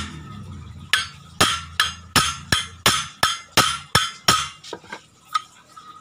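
A metal tool taps and knocks sharply against a metal part in quick, ringing blows.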